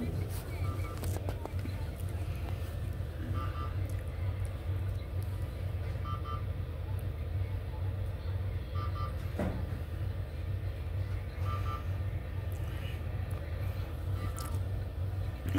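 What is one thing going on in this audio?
A medical monitor beeps softly at a slow, steady pace.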